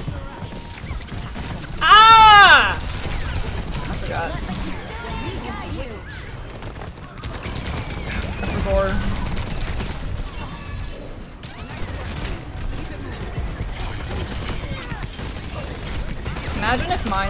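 A young woman talks into a close microphone.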